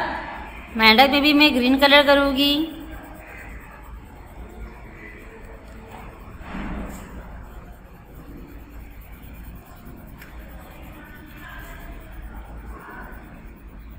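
A pencil scratches softly as it colours on paper.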